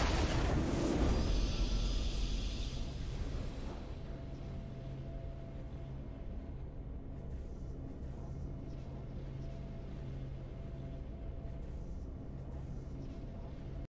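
A triumphant fanfare swells and then holds soft, steady notes.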